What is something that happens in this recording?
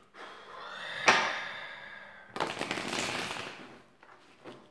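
Cards shuffle and riffle in a man's hands.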